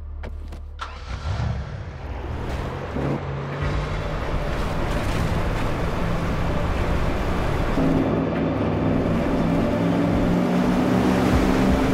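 A motorboat engine revs up and roars as the boat speeds across water.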